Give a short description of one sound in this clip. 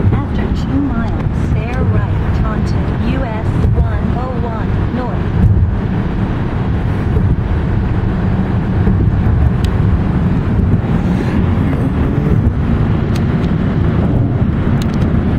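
A car's engine and tyres rumble steadily on the road from inside the car.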